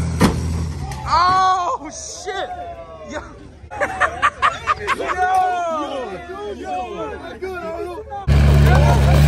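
A young man laughs excitedly close by.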